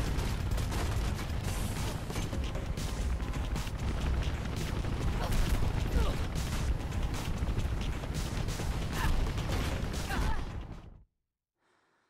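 A helicopter rotor thumps and roars loudly.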